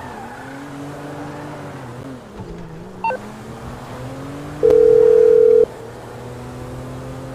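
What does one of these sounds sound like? A car engine hums and revs as it drives.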